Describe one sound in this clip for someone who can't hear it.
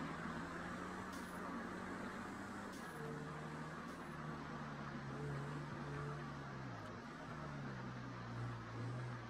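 A car engine hums steadily as a car drives along a road, its pitch shifting with speed.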